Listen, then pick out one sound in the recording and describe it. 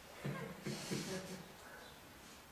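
An elderly man laughs softly near a microphone.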